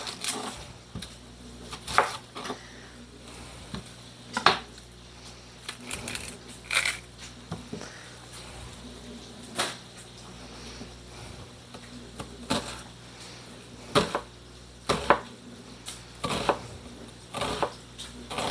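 A knife chops against a cutting board with sharp taps.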